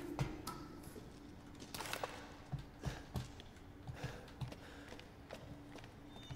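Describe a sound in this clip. Footsteps thud slowly on stone floor and steps.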